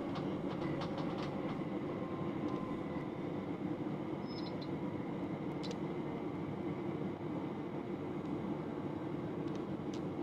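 Train wheels click and squeal on the rails.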